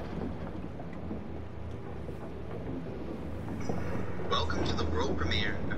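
An engine rumbles steadily.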